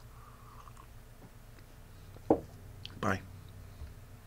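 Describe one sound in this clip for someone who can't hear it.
A man slurps a drink close by.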